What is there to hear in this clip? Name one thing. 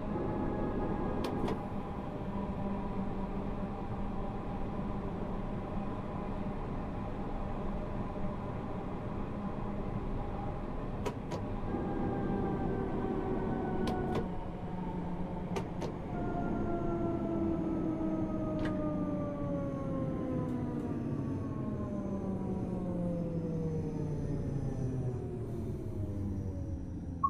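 An electric train motor hums steadily and winds down in pitch as the train slows.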